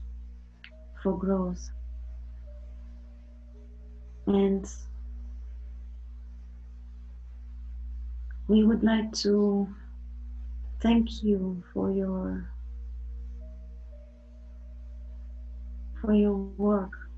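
A woman talks over an online call.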